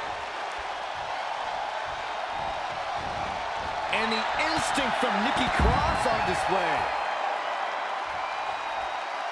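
A large crowd cheers steadily in a big arena.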